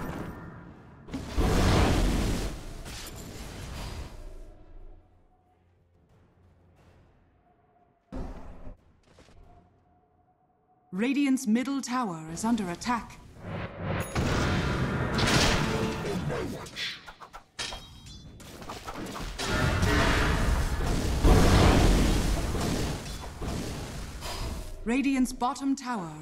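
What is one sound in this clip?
Magic spells burst and whoosh in a fight.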